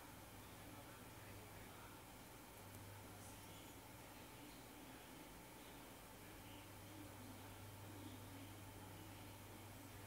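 A finger taps lightly on a phone's glass.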